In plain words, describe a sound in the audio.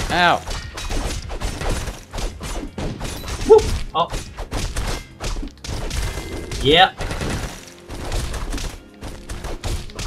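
Game swords clash and thud in quick hits.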